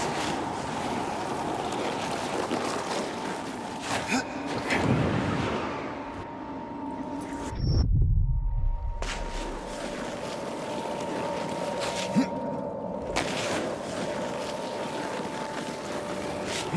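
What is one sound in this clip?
Wind howls steadily.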